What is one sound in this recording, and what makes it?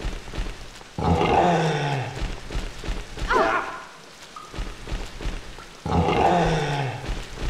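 A metal pipe strikes with heavy thuds.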